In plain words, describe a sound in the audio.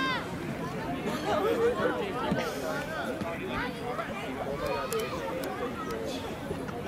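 A group of young men shout and talk over each other outdoors.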